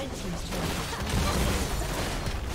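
A game tower collapses with a heavy crash.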